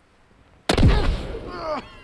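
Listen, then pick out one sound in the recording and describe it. A smoke bomb bursts with a loud bang.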